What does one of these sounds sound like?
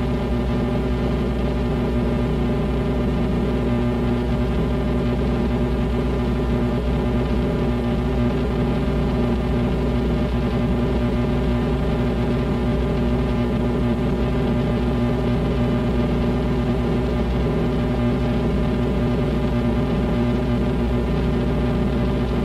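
Electric guitars play loudly through amplifiers.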